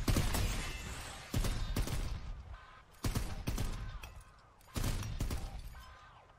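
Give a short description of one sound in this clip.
Blades slash and clang in loud bursts.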